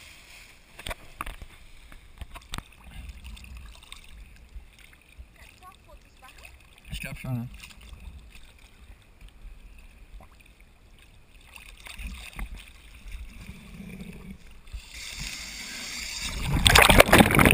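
Small waves lap and slosh close by.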